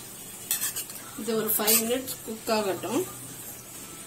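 A metal spoon scrapes and stirs food in a pan.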